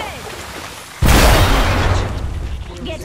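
A sharp electric crackle bursts out.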